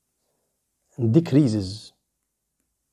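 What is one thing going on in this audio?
A young man speaks briefly and calmly into a close microphone.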